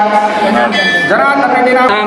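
A man chants through a microphone.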